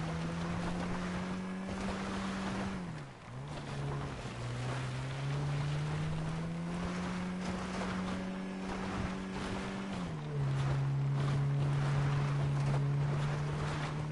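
A car engine hums and revs, shifting up and down in pitch.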